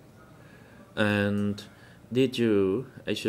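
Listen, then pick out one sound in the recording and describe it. A man speaks slowly and formally into a microphone.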